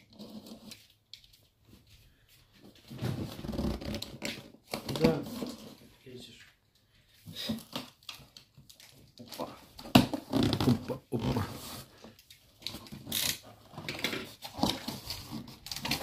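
Cardboard scrapes and rustles as a box is handled and opened.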